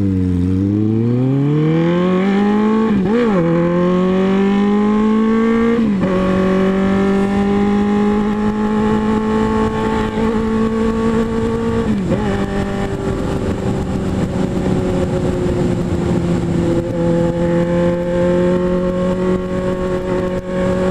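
A motorcycle engine revs up through the gears and then hums steadily.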